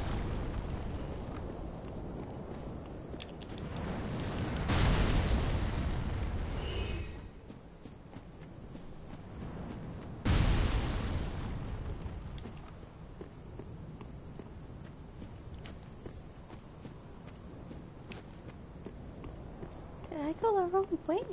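Armoured footsteps crunch on stone and gravel.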